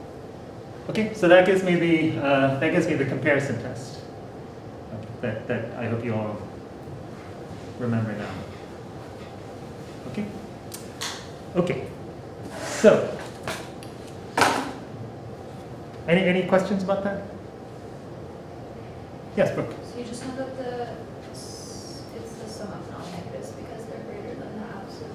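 A man lectures in a room with a slight echo.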